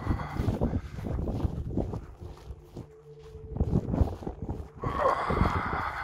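Footsteps crunch and swish through grass.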